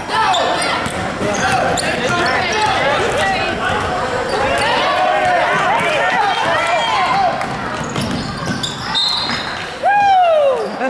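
A crowd of spectators murmurs and calls out in an echoing hall.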